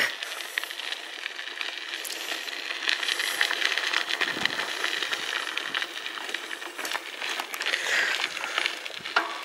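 Bicycle tyres crunch and rattle over a gravel path.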